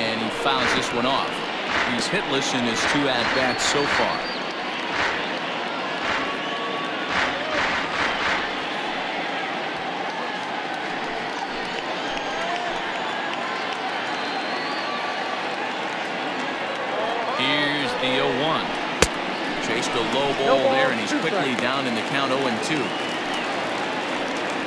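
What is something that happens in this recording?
A large crowd murmurs and cheers steadily in a big stadium.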